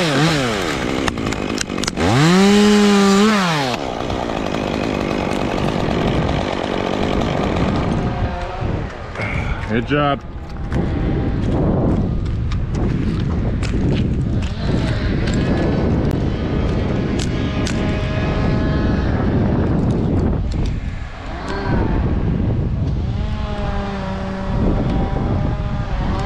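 A chainsaw engine revs loudly up close, then idles unevenly.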